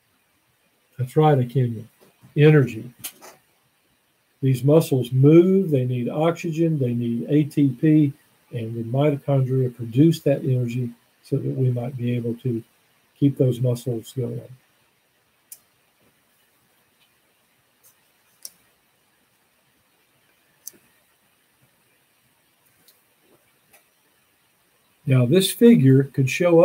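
An older man talks calmly and close up, with pauses.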